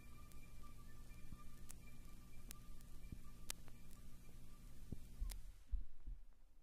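A vinyl record crackles and pops as it spins on a turntable.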